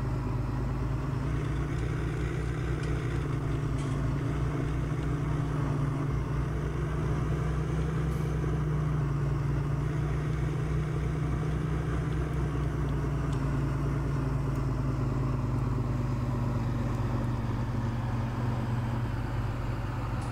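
A hydraulic crane arm whirs as it swings a log.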